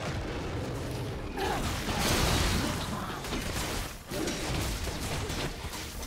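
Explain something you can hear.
Game spell blasts and weapon strikes crackle in a fight.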